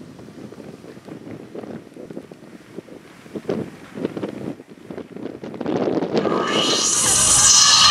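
Wind blows and flags flap loudly.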